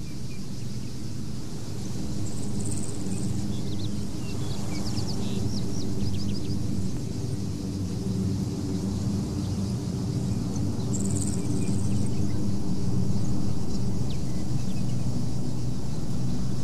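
An aircraft engine drones overhead, growing louder as it approaches.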